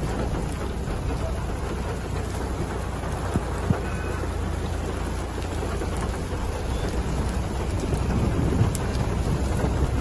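Strong wind blows outdoors, rumbling against the microphone.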